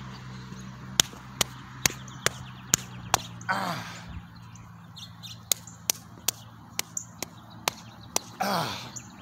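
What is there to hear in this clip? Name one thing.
A man claps his hands in a steady beat.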